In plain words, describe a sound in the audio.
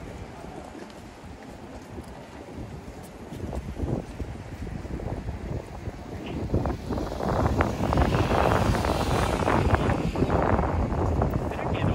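Footsteps of pedestrians tap on the pavement.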